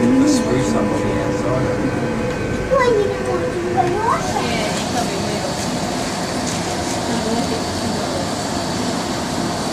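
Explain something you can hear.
A monorail car hums and rumbles steadily along its track.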